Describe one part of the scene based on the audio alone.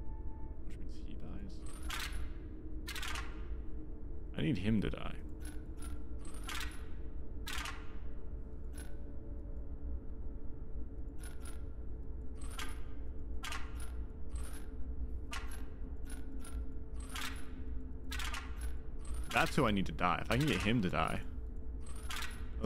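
Game puzzle tiles click and chime as they move.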